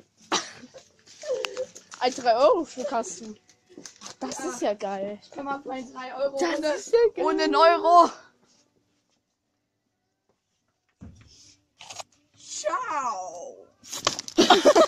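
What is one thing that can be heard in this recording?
A young boy talks excitedly and laughs close by.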